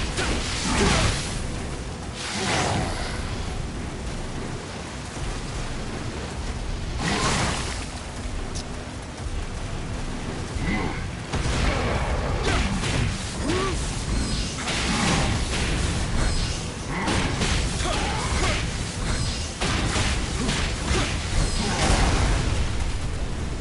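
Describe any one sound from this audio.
Fiery blasts burst with loud whooshes.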